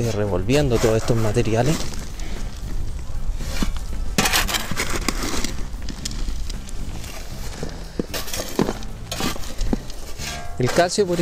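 A metal shovel scrapes and digs into loose soil.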